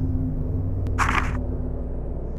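A soft chime rings once.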